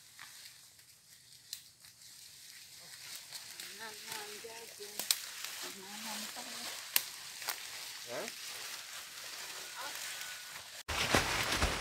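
Large leafy stalks rustle and swish as people carry them past.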